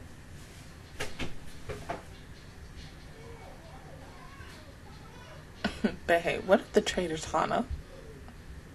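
A young woman speaks into a close microphone in short bursts, with animation.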